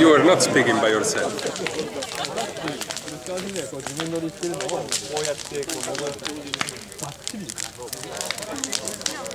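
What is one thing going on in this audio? A crowd of people chatter outdoors in the distance.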